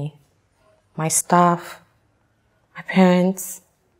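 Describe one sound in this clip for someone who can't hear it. A second young woman answers calmly nearby.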